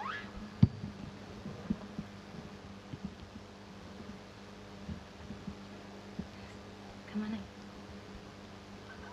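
Two acoustic guitars are plucked softly together.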